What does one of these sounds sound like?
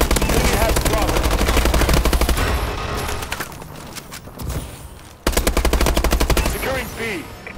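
A rapid-firing gun shoots in fast bursts.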